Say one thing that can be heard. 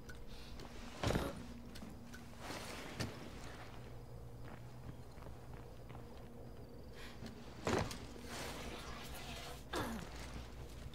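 Heavy thuds land on metal now and then.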